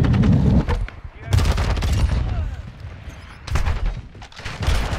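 Rapid gunshots fire in short bursts from a video game.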